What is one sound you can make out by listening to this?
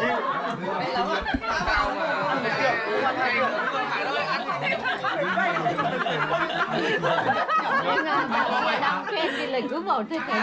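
Several men and women chat loudly together at close range.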